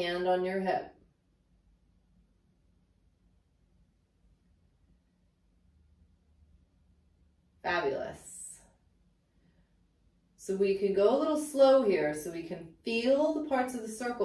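A woman speaks calmly and clearly into a close microphone, pausing between phrases.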